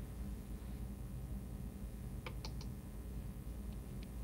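A brush taps lightly on paper.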